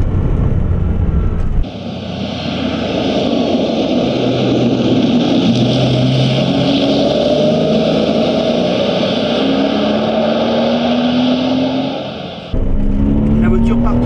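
A car engine hums and rumbles from inside the car.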